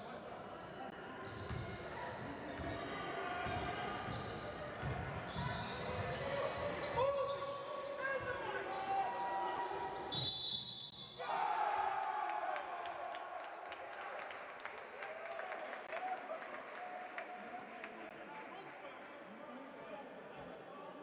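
A crowd murmurs and claps in an echoing hall.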